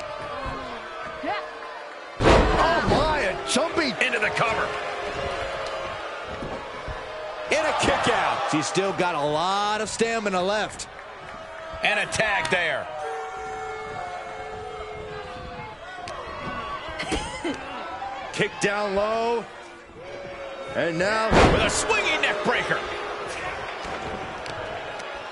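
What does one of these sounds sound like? A crowd cheers and shouts in a large arena.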